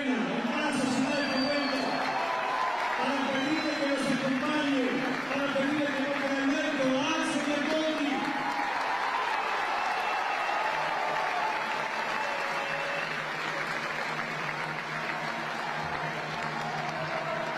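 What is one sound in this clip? A large crowd cheers and chants loudly.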